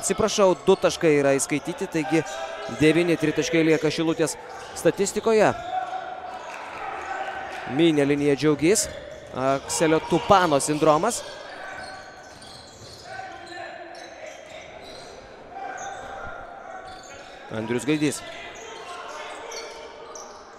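A crowd murmurs in an echoing hall.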